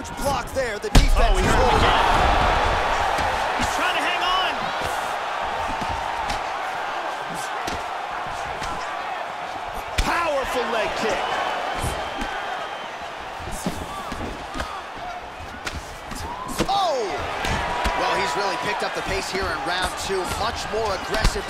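A crowd roars and cheers throughout.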